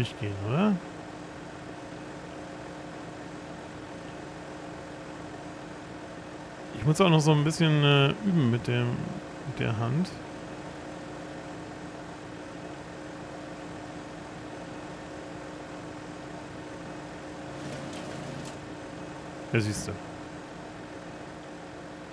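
A tractor engine idles with a steady low hum.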